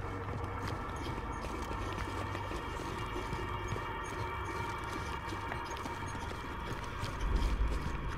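Footsteps clatter on metal stairs and grating.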